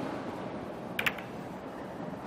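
Snooker balls clack together as the pack breaks apart.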